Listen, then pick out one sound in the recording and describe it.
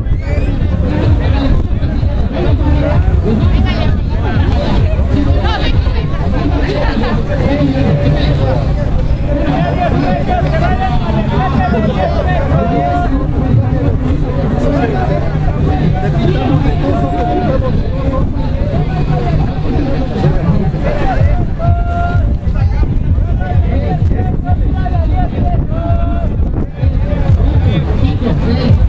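A large outdoor crowd chatters loudly all around.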